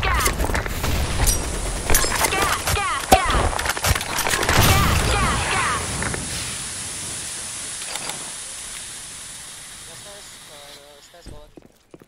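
Gas hisses steadily from a grenade and slowly fades.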